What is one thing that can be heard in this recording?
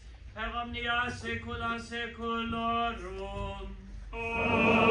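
An elderly man chants a prayer aloud.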